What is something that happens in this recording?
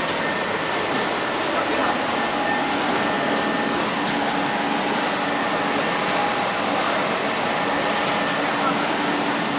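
A cooling fan hums steadily.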